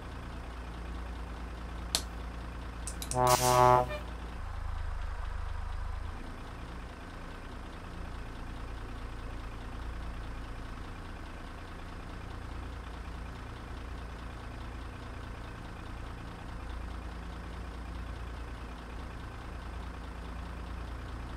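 A truck engine rumbles low and steady as the truck pulls slowly away.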